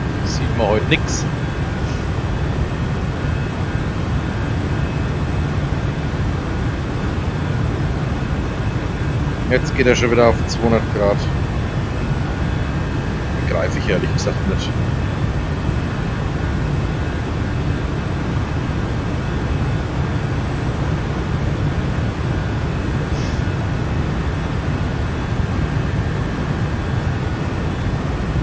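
Jet engines drone with a steady low rumble.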